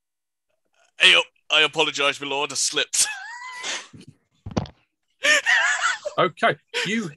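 Several men laugh loudly over an online call.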